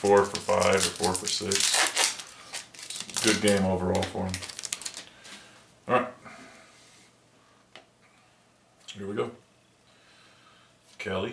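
Stiff paper cards rustle and flick as hands shuffle through them.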